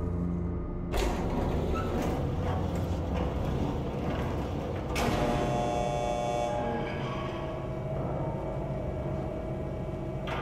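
An elevator rumbles and hums as it moves.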